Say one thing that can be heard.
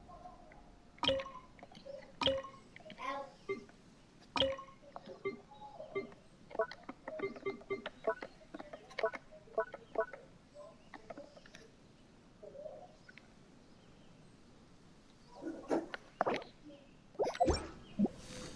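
Short menu clicks and soft chimes sound one after another.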